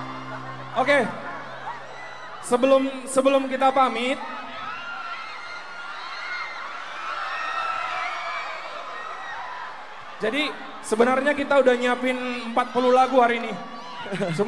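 A crowd cheers and shouts in a large echoing space.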